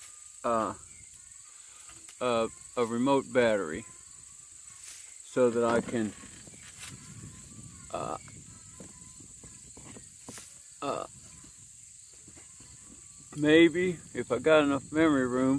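Leaves rustle as donkeys pull at a bush.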